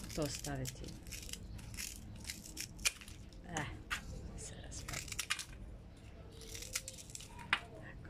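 A small scoop scrapes and rustles through gritty soil.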